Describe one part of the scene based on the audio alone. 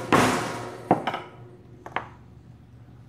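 Metal parts clink together softly.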